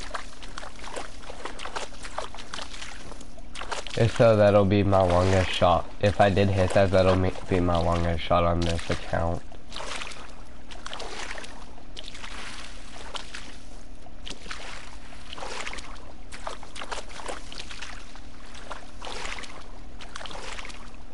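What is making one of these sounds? Footsteps rustle through tall dry grass.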